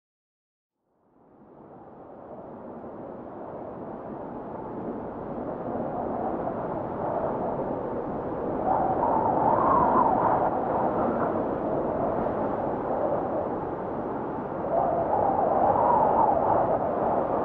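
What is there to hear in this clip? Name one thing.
Strong wind blows and gusts across open snow.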